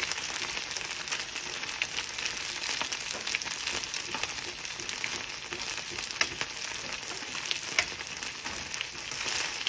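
Tongs scrape and clink against a pan.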